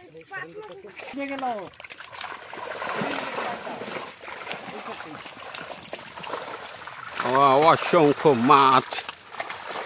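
A fishing net drags and squelches through mud and shallow water.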